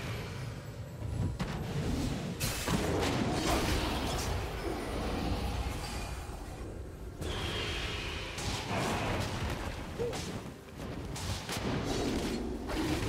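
Magical spell effects crackle and burst in a fast fight.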